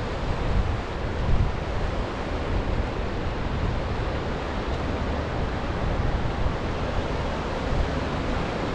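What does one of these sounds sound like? Waves wash and break against rocks nearby.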